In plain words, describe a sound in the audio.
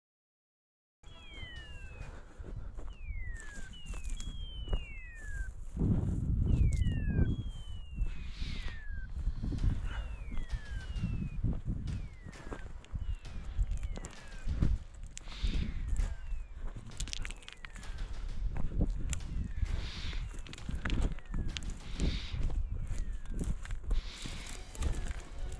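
A bird calls with repeated sharp falling whistles.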